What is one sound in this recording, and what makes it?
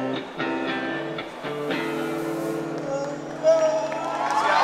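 A live rock band plays music through loud speakers.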